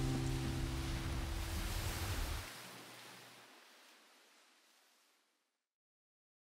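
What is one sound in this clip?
Small waves wash gently onto a pebbly shore and slowly fade away.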